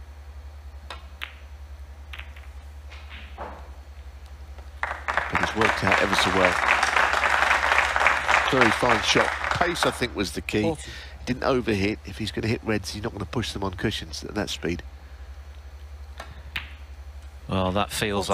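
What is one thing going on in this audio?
A cue strikes a snooker ball with a sharp click.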